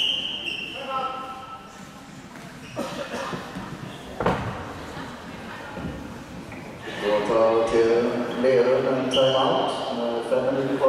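Sticks strike a ball with sharp knocks in an echoing hall.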